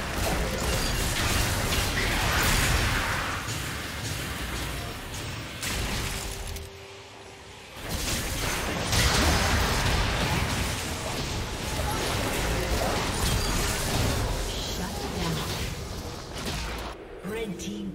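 Fantasy game combat sounds of spells blasting and weapons striking ring out.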